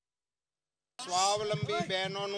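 An elderly man speaks firmly into microphones.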